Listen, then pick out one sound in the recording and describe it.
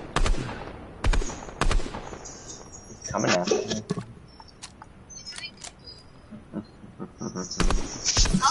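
A gun fires loud single shots.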